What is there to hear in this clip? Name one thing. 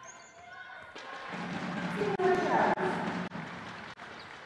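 A crowd cheers briefly.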